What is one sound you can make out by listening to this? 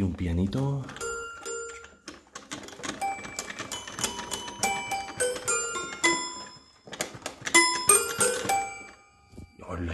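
A toy piano plays a few tinkling, plinking notes.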